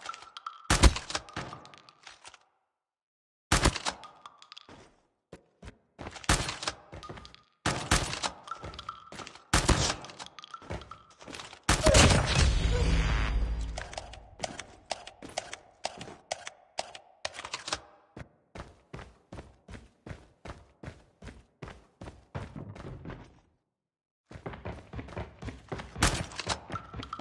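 A rifle fires in loud sharp bursts.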